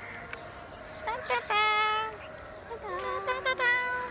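A young girl speaks in a high voice close by.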